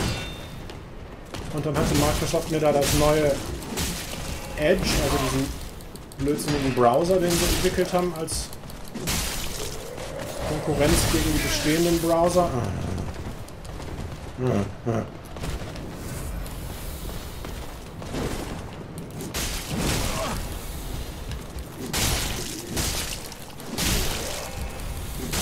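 Swords clash and strike in a game fight.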